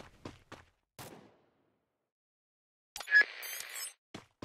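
A short electronic chime sounds from a menu.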